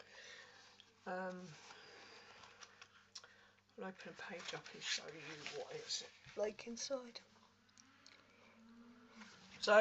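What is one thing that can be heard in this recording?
Paper pages rustle as a notebook is handled.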